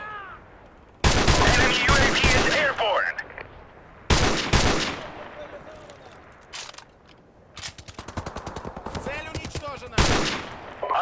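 A rifle fires loud shots in bursts.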